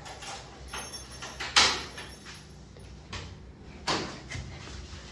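A young girl unlocks a door with a click and a rattle.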